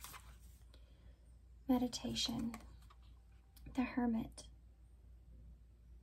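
A playing card slides and taps onto a table.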